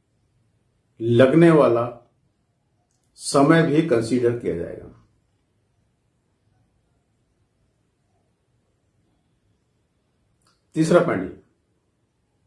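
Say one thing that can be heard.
An elderly man speaks calmly, with pauses, close to a microphone.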